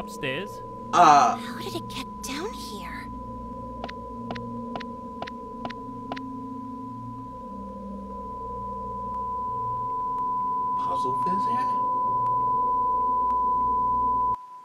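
A steady high test tone beeps through a speaker, growing louder.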